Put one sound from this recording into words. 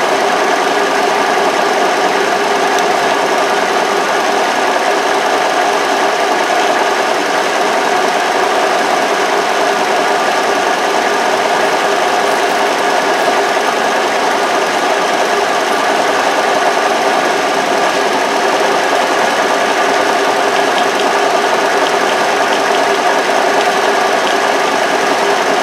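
A milling cutter whirs and grinds steadily into metal.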